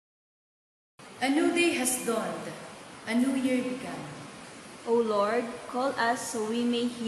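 A young woman reads out calmly through a microphone.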